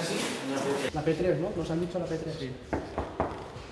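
A young man talks with animation.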